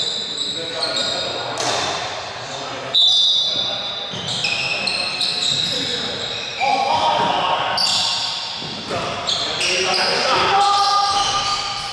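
Sneakers squeak sharply, again and again, across an echoing indoor court.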